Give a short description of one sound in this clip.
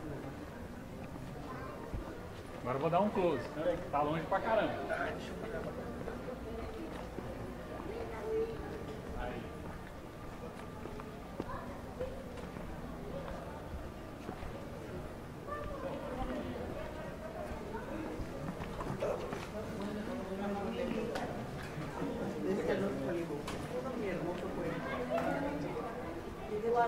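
A crowd of people chatter nearby in an open courtyard.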